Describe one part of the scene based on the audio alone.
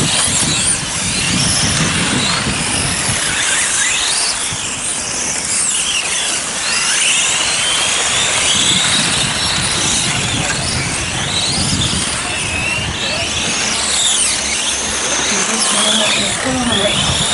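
Small electric racing cars whine at high speed, their pitch rising and falling.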